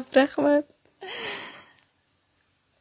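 Two young women laugh together.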